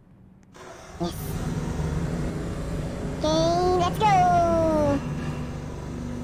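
A forklift engine hums with a low, steady rumble.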